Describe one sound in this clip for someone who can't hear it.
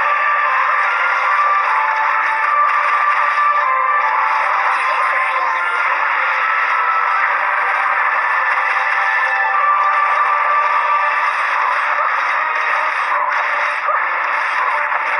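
Magic blasts and sword strikes clash in a battle.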